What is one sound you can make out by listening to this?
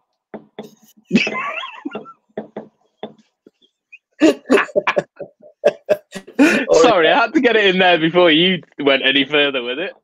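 A middle-aged man laughs heartily over an online call.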